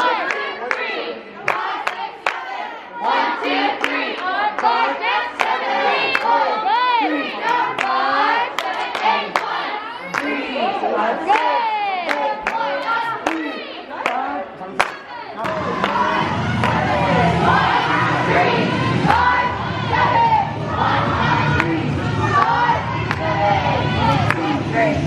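Young women shout and cheer loudly in a large echoing hall.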